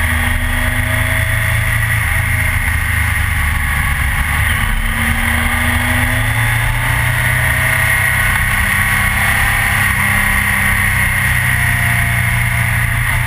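A motorcycle engine hums steadily at speed.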